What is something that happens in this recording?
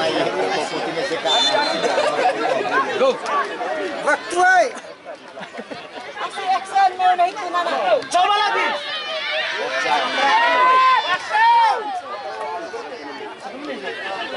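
A crowd of spectators chatters and shouts outdoors.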